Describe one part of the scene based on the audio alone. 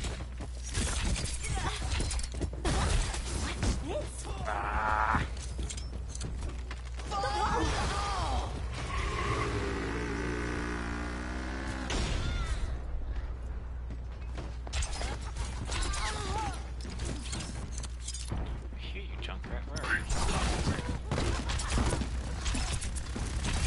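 Shuriken whoosh and clatter in quick bursts as they are thrown.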